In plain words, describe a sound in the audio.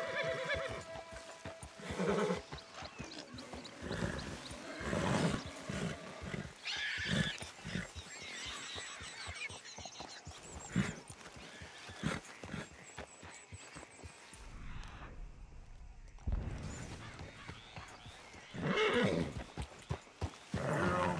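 Horse hooves thud steadily on a forest floor.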